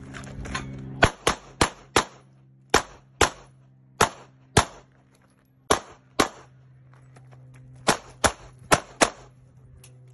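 A pistol fires rapid shots outdoors, each crack sharp and loud.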